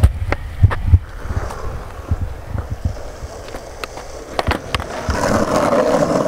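Skateboard wheels roll and clack over rough asphalt.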